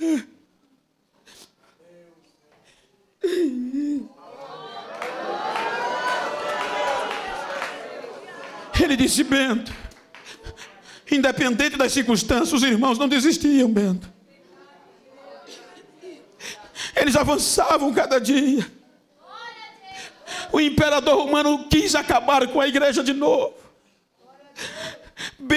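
An elderly man preaches loudly and with emphasis through a microphone, in bursts with pauses.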